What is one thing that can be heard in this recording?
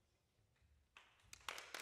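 An audience bursts into applause in a large echoing hall.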